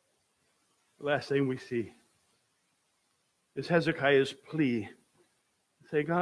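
An elderly man speaks calmly through a microphone, pausing between phrases.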